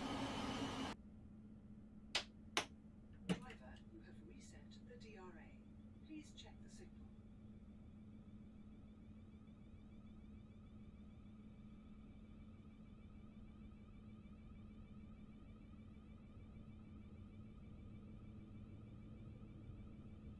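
A train's motor hums steadily from inside the cab.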